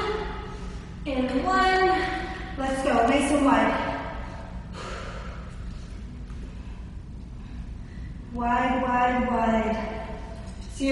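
A young woman talks calmly and clearly nearby.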